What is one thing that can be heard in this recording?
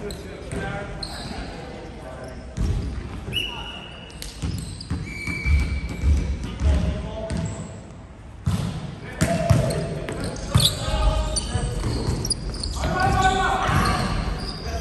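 Young men call out to each other in an echoing hall.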